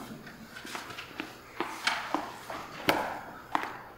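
Footsteps patter across a wooden floor.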